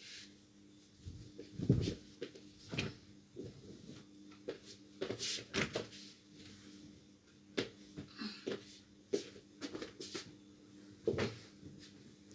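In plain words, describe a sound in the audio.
Fabric bumps and thumps softly against a mattress.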